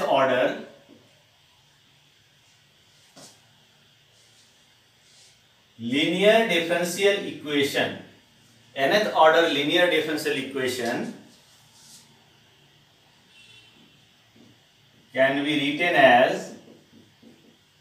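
A man lectures calmly, in short bursts with pauses.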